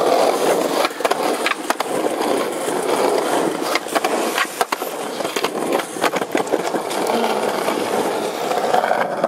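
Skateboard wheels roll and rumble over pavement.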